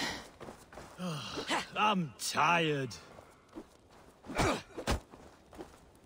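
Punches thud during a fistfight.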